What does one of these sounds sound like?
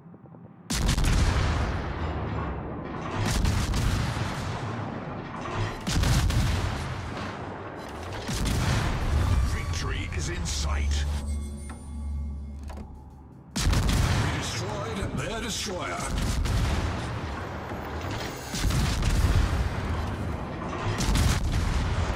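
Heavy naval guns fire in loud, booming blasts, again and again.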